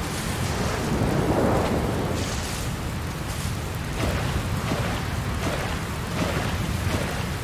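Waves lap gently against a shore.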